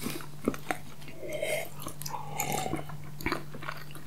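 Milk is gulped in loud swallows close to a microphone.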